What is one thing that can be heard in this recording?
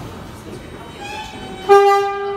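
A two-tone door chime sounds from the train.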